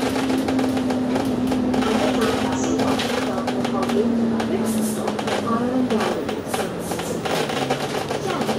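A bus engine hums, its pitch dropping as the bus slows down.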